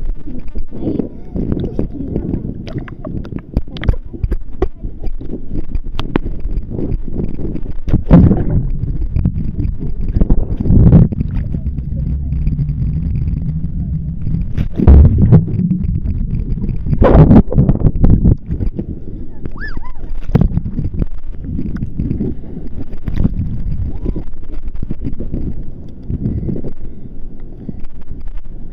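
Water splashes and churns close to the microphone.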